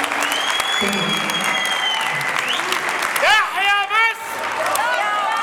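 A crowd claps along rhythmically.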